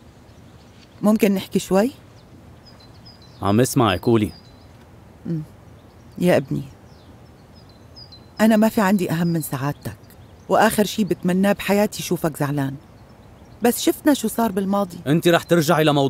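A middle-aged woman speaks calmly and seriously, close by.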